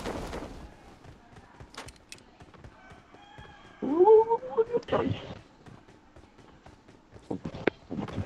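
Footsteps run across a hard roof.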